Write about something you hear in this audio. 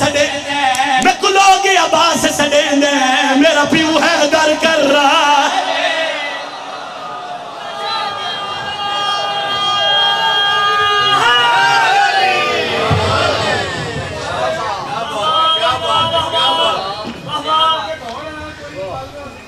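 A young man chants loudly through a microphone with strong feeling.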